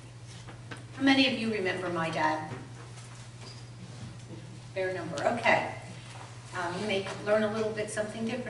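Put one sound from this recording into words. An older woman speaks calmly into a microphone over a loudspeaker.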